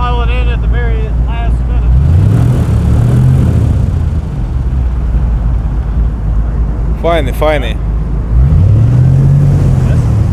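An airboat engine roars loudly and revs up twice.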